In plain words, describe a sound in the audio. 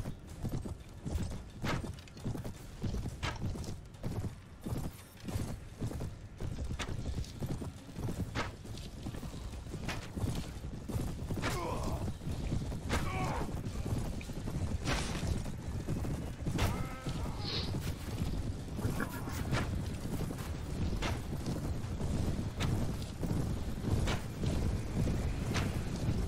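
Horse hooves thud steadily at a gallop.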